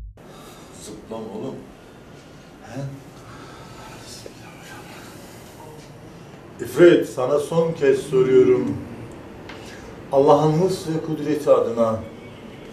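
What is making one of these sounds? A man speaks close by in a low, firm voice.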